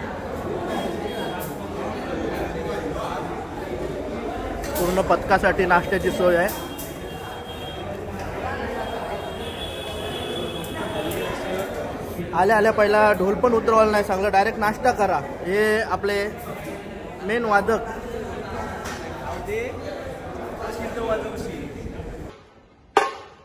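A crowd of young men chatters in the background.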